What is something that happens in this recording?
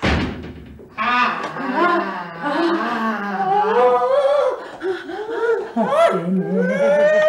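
A woman shouts excitedly.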